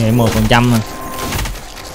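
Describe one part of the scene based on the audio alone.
A young man speaks into a microphone close by.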